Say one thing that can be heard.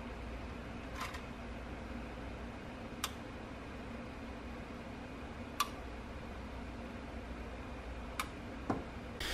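A small relay clicks sharply now and then.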